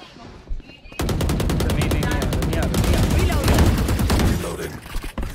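Rapid gunfire rattles from a game.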